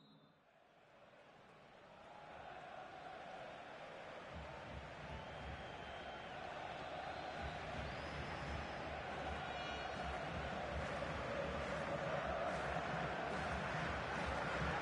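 A large stadium crowd murmurs and cheers, slowly growing louder.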